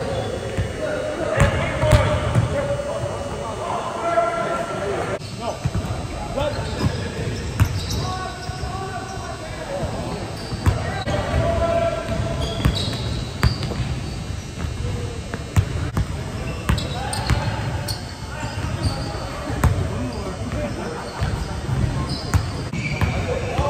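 Young men call out and talk loudly across the court.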